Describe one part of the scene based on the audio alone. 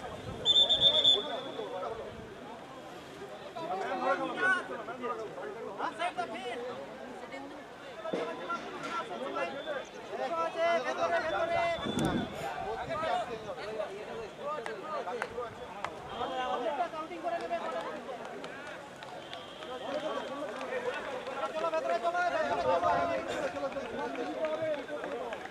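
Men talk outdoors nearby.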